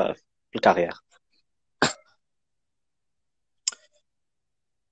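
A young man speaks calmly in short bursts, close to the microphone.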